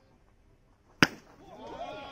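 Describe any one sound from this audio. A metal bat cracks sharply against a baseball.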